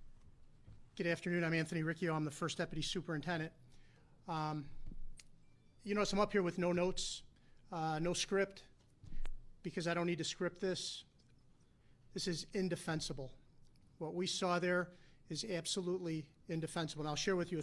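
A middle-aged man speaks steadily into a microphone, pausing between phrases.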